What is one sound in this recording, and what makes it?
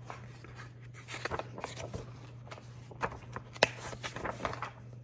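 Book pages rustle as they turn.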